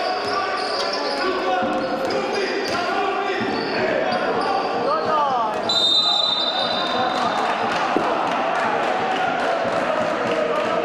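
A crowd murmurs and cheers in an echoing hall.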